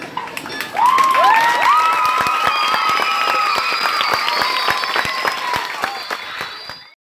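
A crowd of young children shouts and cheers outdoors.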